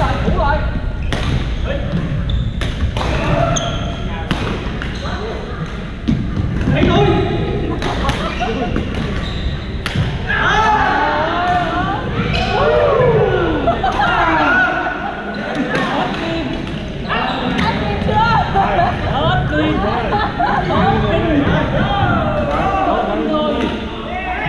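Many players call out and talk, echoing around a large hall.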